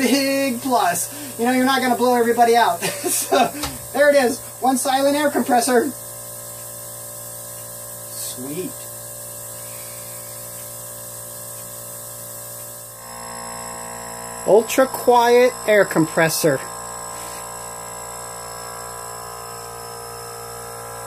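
An air compressor motor hums steadily.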